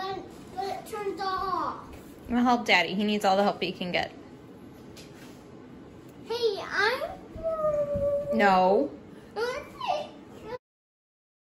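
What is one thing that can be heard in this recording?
A young child talks with animation close by.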